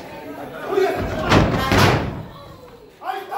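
A wrestler slams down hard onto the ring mat.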